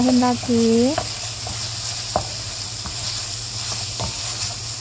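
A spatula scrapes and knocks against a pan.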